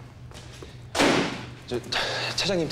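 A young man shouts urgently.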